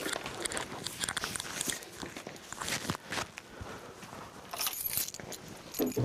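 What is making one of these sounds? Bracelets jingle softly.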